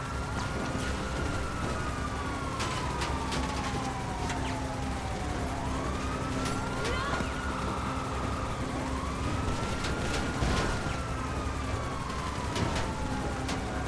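Rain hisses steadily outdoors.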